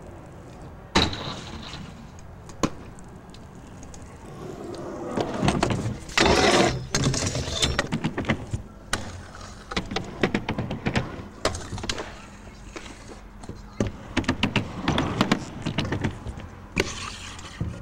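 A scooter deck clacks hard against a ramp edge.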